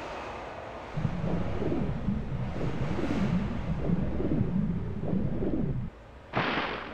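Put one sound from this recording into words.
Water sloshes and bubbles as a swimmer moves through it.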